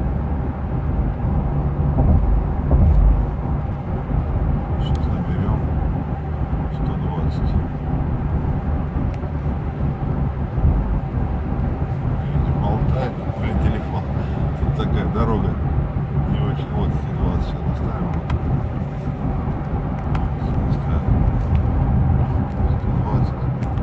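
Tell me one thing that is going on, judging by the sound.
A car engine hums steadily at a constant speed.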